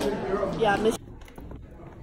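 Footsteps tap down stairs.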